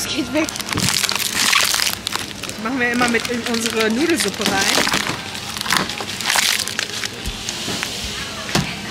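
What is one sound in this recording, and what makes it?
A plastic package crinkles and rustles in a hand.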